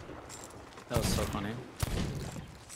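A pistol fires a sharp shot.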